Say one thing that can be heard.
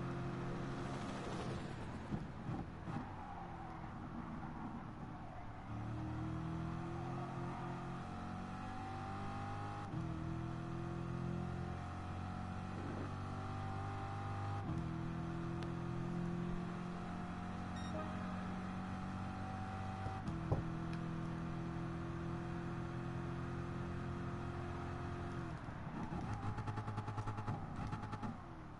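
A racing car engine roars loudly, revving up and dropping with each gear change.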